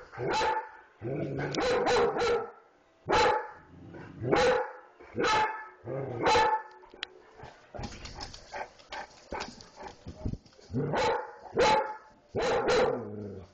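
A large dog barks loudly and repeatedly close by.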